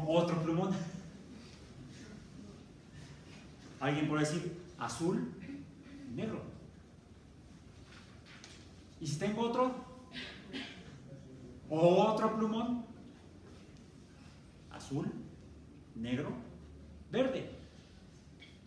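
A man speaks calmly and clearly in a room with a slight echo, pausing between phrases.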